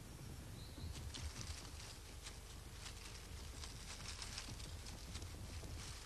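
Heavy hooves crunch and rustle through dry leaves on the forest floor.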